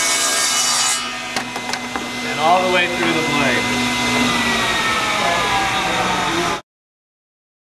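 A table saw's motor hums and slowly winds down.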